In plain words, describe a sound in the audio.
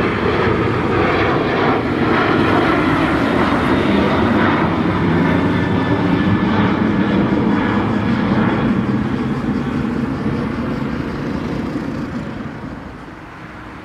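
A jet airliner roars loudly as it climbs overhead and fades away.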